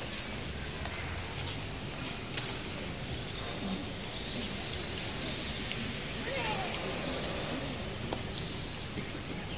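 A crowd murmurs and shuffles in a large echoing hall.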